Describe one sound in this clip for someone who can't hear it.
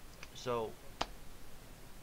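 A sharp click sounds close to a microphone.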